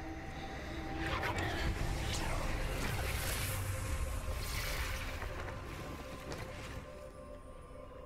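A magical whoosh swells and fades.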